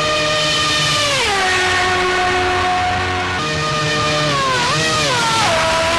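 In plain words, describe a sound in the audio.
A single-seater racing car engine drops in pitch as it downshifts for a bend.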